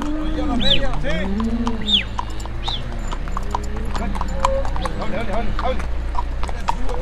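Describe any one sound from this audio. Hooves clop on pavement.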